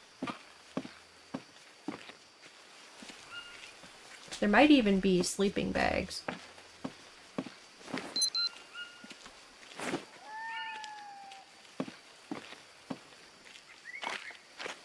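Footsteps crunch steadily on dry leaves and soil.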